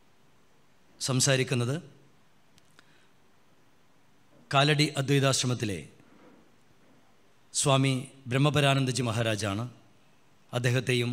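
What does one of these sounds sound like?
A man speaks slowly and calmly into a microphone, in short phrases with pauses.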